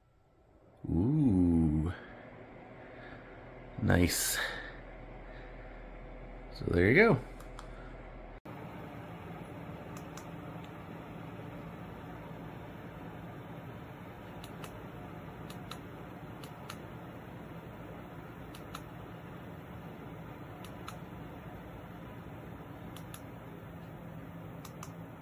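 A ceiling fan hums steadily.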